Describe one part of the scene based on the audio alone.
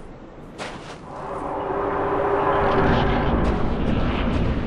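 A deep rushing whoosh swells and grows louder.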